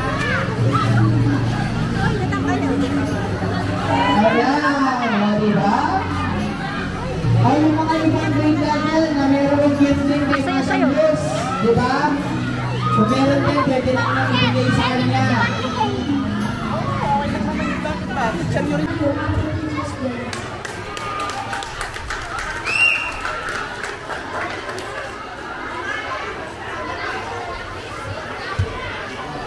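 A crowd of children chatter and call out close by, outdoors.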